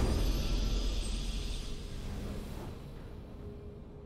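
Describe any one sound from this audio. A triumphant game fanfare rings out and fades away.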